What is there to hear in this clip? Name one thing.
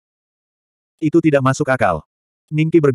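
A young man speaks with alarm.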